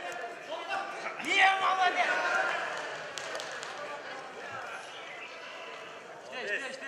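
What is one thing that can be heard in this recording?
A large indoor crowd cheers and shouts loudly in an echoing hall.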